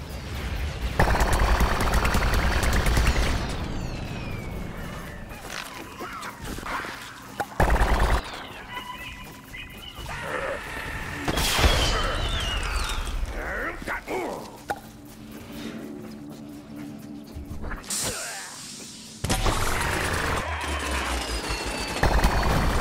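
Rapid cartoonish shots fire in quick bursts.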